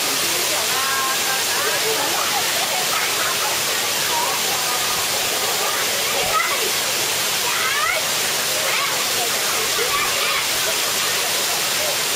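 Water rushes steadily over a rocky waterfall close by.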